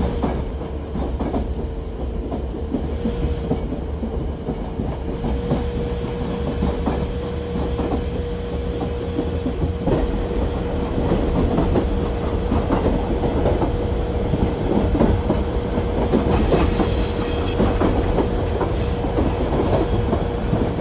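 A locomotive engine rumbles steadily.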